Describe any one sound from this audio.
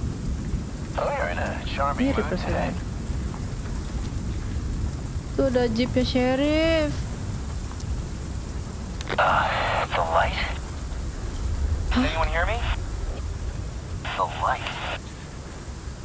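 A young woman talks into a nearby microphone in short bursts.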